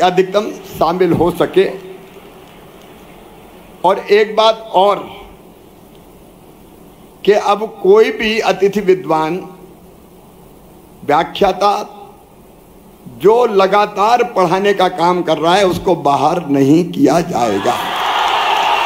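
A middle-aged man speaks forcefully into a microphone over loudspeakers in a large echoing hall.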